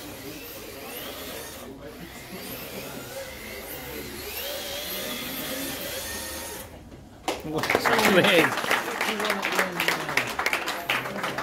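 Small electric model cars whir and whine as they race around.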